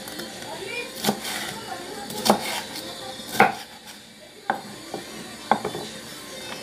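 A knife chops through soft vegetables onto a wooden board with sharp knocks.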